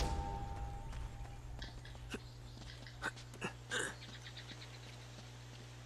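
Footsteps thud on soft ground.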